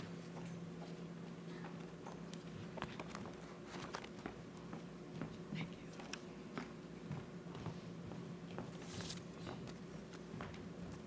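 Footsteps tap on stairs and a wooden stage floor.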